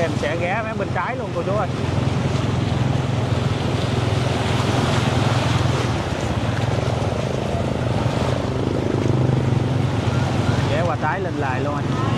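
Water splashes and churns around moving wheels.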